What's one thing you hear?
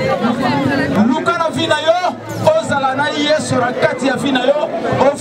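A man speaks with emotion into a microphone, heard through loudspeakers.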